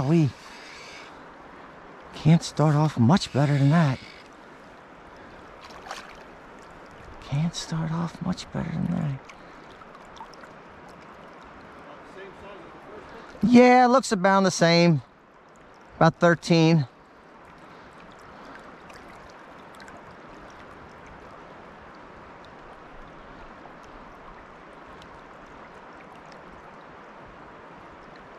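A river flows steadily over stones.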